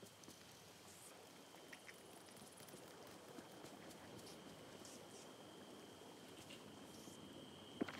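Footsteps patter softly over grass.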